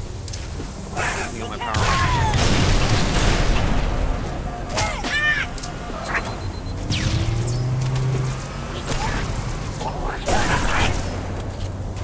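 Rifle gunfire rattles in bursts.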